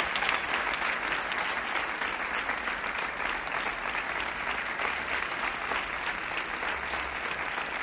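An audience applauds steadily outdoors.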